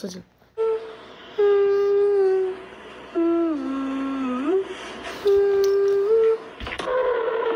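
A woman sings in long held notes through a phone speaker.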